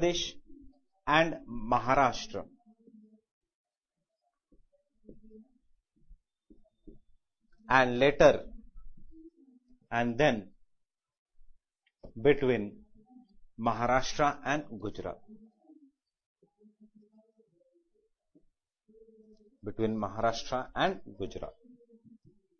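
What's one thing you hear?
A man speaks calmly in short bursts with pauses, close by.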